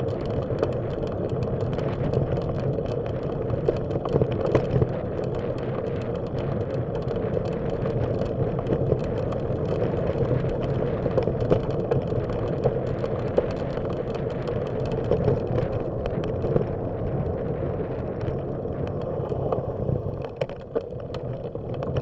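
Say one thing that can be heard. Tyres rumble on rough pavement.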